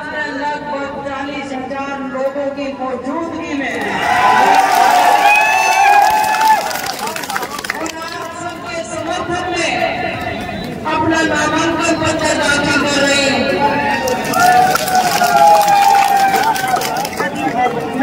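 A crowd chants slogans loudly outdoors.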